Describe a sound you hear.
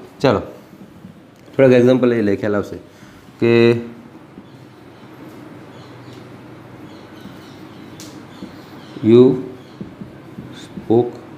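A man speaks in short bursts, close by.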